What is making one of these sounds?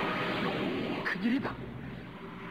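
A young woman cries out in alarm.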